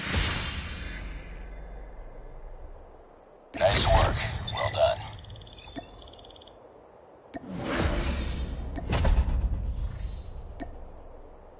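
Game music and reward sound effects play loudly in bursts.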